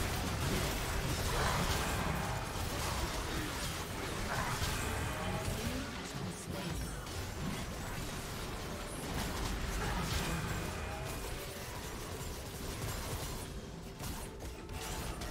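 Game spell effects crackle and boom during a fast fight.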